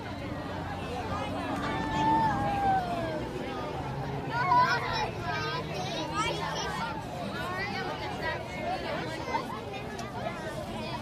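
Children chatter and call out nearby outdoors.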